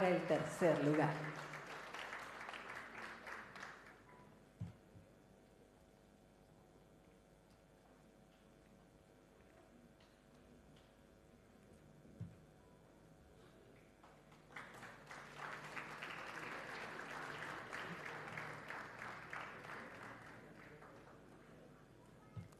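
An audience applauds in a large hall.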